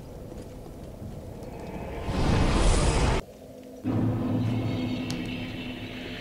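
A fire crackles softly.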